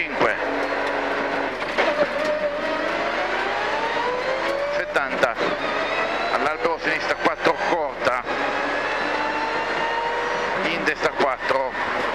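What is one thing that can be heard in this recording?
A rally car engine roars and revs up and down loudly.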